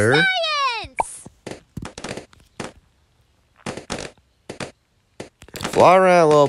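Short electronic pops and blips from a game play in quick bursts.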